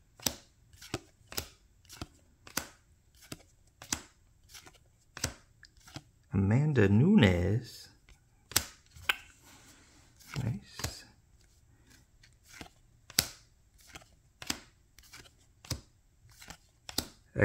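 Trading cards slap and flick against each other as they are shuffled by hand.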